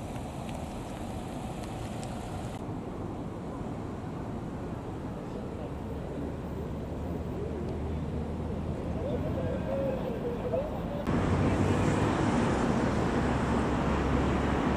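Cars drive past on a road with a steady traffic rumble.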